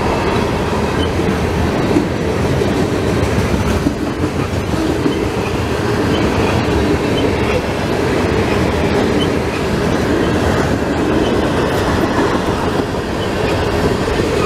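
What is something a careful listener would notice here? Steel wheels clack rhythmically over rail joints.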